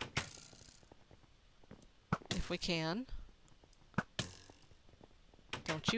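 A bow twangs as arrows are shot.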